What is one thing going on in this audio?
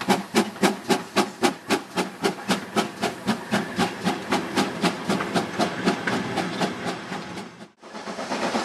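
A steam locomotive chuffs in a steady rhythm and slowly fades away.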